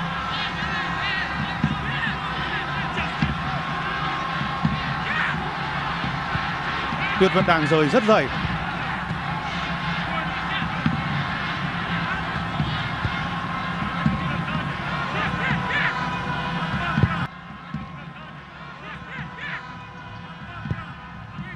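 A large stadium crowd roars and chants steadily in the distance.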